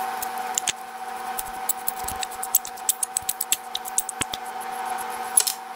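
A threaded knob turns on a screw with small metallic clicks.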